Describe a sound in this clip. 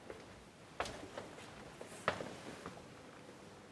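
Chalk taps and scrapes against a blackboard.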